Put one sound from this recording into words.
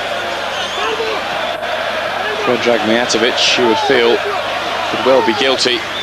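A stadium crowd murmurs and chants steadily in a large open space.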